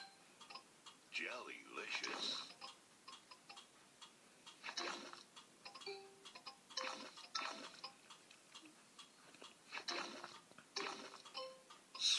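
Bright chimes and popping sound effects ring out in quick bursts.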